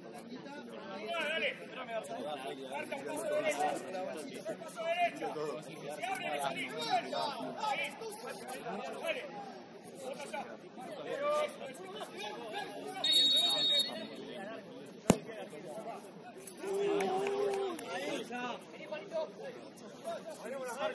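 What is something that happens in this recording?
Young men shout and call to each other across an outdoor pitch.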